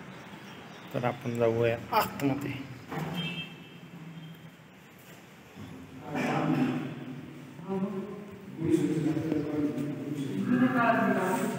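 A man speaks nearby in short phrases.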